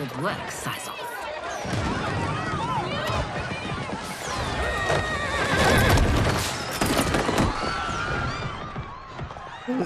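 A crowd cheers and chatters loudly.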